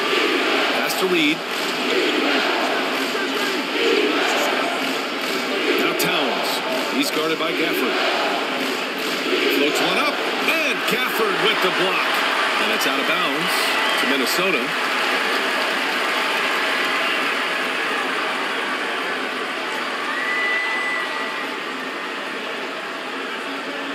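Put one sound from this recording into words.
A large crowd murmurs steadily in an echoing arena.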